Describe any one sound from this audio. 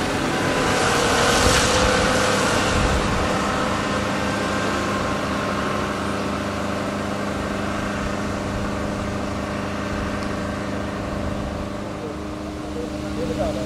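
An excavator engine rumbles steadily in the distance.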